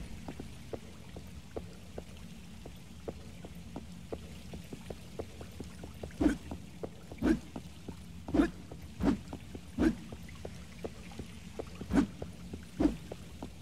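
Footsteps tread slowly and steadily on a hard floor.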